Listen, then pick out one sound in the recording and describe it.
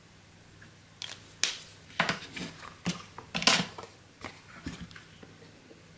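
A sheet of paper rustles as it is handled.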